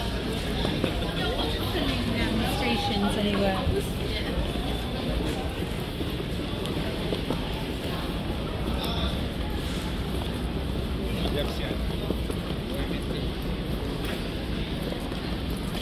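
Trolley wheels rattle along a hard floor.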